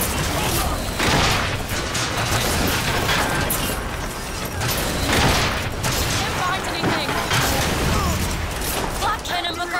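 Gunshots and explosions boom in rapid bursts.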